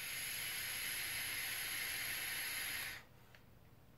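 A vaporizer device hisses as a man inhales from it.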